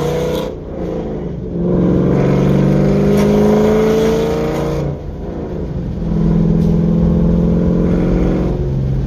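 A car engine drones from inside the car, rising in pitch as it speeds up.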